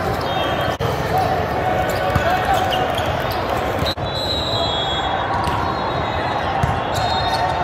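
A volleyball is struck with a sharp slap.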